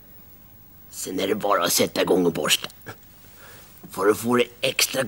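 An elderly man speaks close by with animation.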